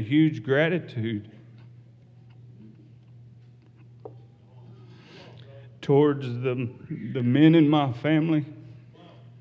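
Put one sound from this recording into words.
A middle-aged man speaks with emphasis into a microphone, in pauses.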